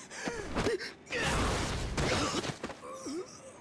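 A heavy blow lands with a loud thud.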